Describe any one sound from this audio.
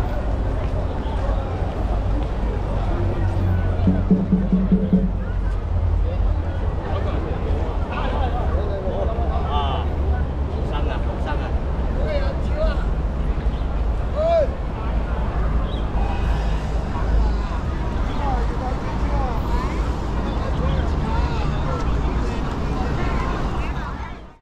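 Footsteps shuffle on a paved square.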